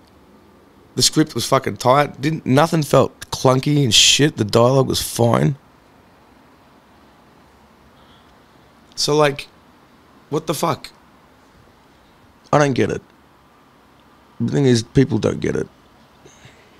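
A man talks casually into a close microphone, in short bursts with pauses.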